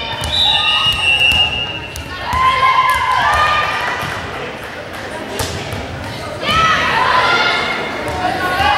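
Sneakers squeak sharply on a hard floor in an echoing gym.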